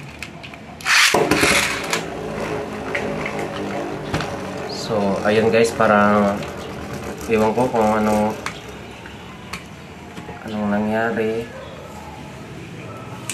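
A spinning top whirs as it spins and rattles in a plastic dish.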